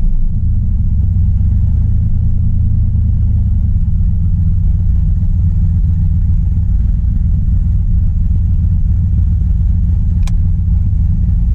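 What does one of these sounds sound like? A car engine idles with a deep, steady rumble.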